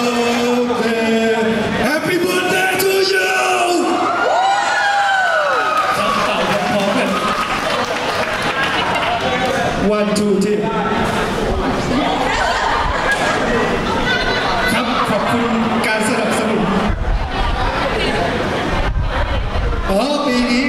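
Young women talk and laugh excitedly through microphones over loudspeakers.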